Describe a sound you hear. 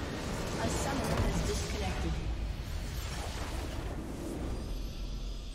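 A video game structure explodes with a deep rumbling blast.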